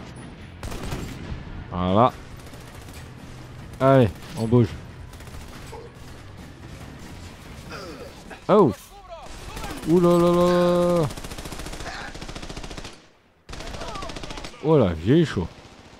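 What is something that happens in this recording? Rifles fire in rapid bursts.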